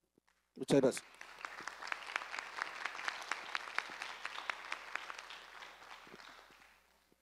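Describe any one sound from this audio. An audience applauds in a hall, then the clapping fades.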